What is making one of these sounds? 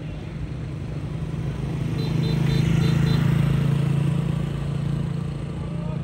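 A motorbike engine idles and revs nearby.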